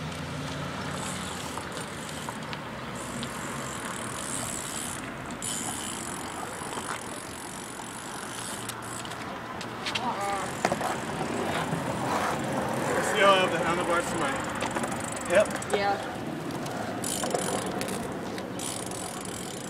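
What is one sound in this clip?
Bicycle tyres roll over pavement nearby.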